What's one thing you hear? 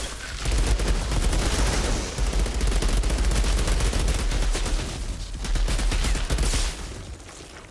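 A heavy machine gun fires in rapid, booming bursts.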